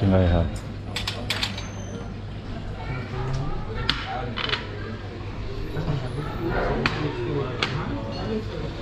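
Plates and cutlery clink as they are set down on a table.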